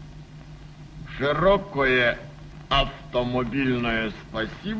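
An elderly man speaks loudly and with animation.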